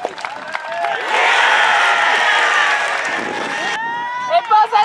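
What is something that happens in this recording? A crowd of spectators cheers and shouts outdoors.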